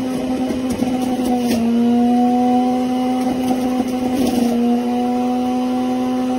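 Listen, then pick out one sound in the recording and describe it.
A juicer's motor hums steadily.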